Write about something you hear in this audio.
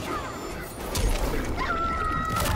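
Flames roar in a burst of fire.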